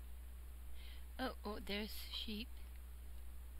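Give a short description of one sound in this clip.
A woman speaks briefly and calmly into a nearby microphone.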